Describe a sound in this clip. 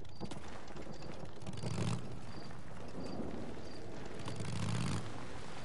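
A motorcycle engine rumbles and revs.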